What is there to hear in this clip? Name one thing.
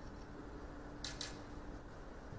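A cue tip is rubbed with chalk in a short scrape.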